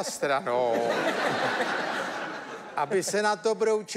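A young man laughs out loud.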